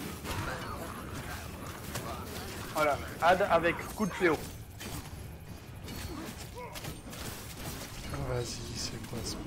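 Blows clash in a fight.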